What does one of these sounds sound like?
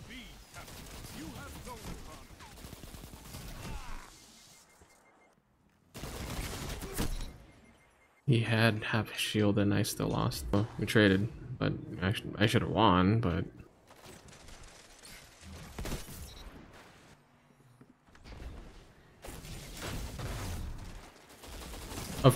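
Rifle shots crack sharply now and then.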